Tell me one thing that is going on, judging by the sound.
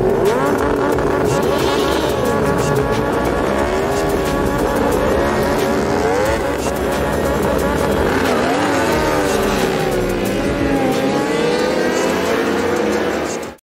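Several motorcycle engines idle and rev loudly, their pitch rising and falling.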